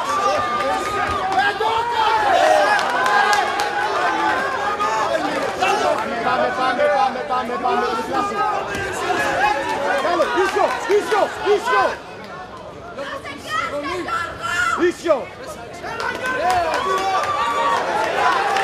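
A crowd of men and women shouts and cheers loudly in a large hall.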